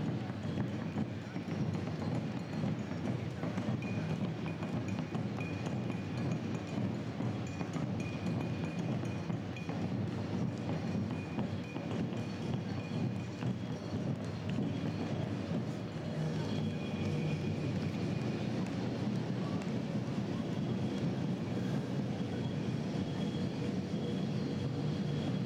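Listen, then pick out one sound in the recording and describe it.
Many running shoes patter on the road outdoors.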